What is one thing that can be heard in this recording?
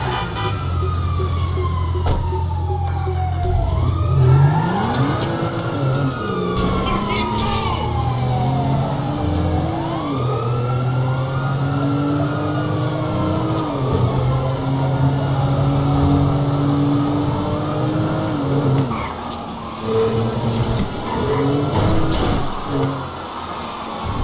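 A car engine idles, then revs and roars as the car speeds away.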